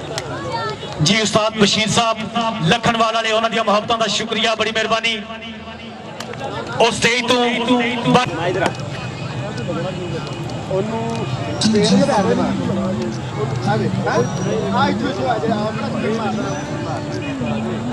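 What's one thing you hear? A man talks with animation through a microphone and loudspeaker, with a ringing echo.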